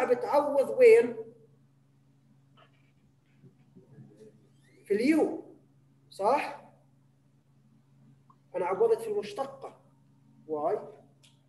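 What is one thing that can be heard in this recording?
A man lectures with animation, heard from a distance.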